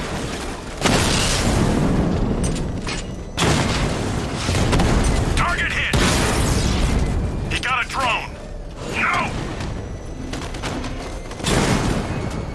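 Explosions boom and crash.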